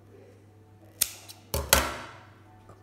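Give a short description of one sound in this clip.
Scissors snip through thread.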